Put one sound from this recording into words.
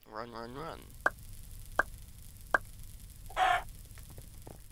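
A game countdown beeps three times, then a higher chime sounds.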